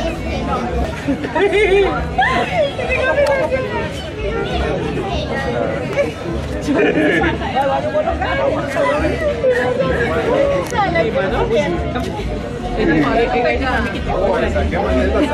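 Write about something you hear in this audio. A crowd of guests chatters and cheers nearby.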